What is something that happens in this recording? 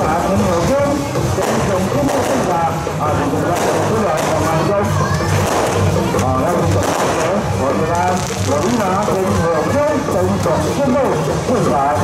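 A large crowd of men and women chatters and calls out nearby.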